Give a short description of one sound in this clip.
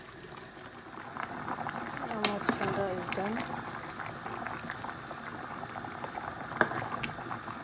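A metal spoon stirs and clinks against a pot.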